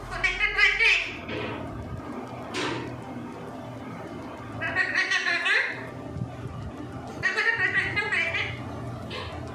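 A parrot squawks and chatters in loud bursts close by.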